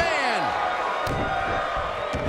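A body slams onto a wrestling mat with a thud.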